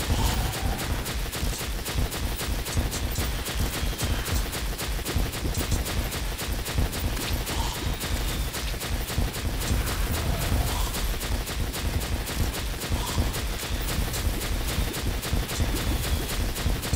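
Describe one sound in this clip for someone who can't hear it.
Rapid explosions boom and crackle without pause.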